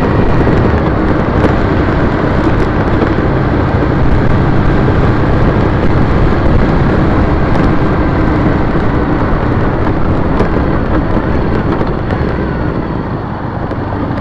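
Strong wind roars across a microphone.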